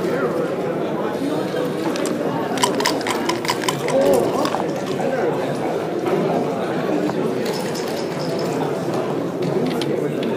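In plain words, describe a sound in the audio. Plastic game pieces click against a board.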